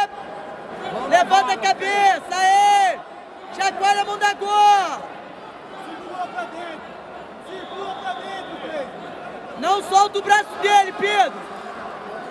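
A woman shouts urgently close by, in bursts.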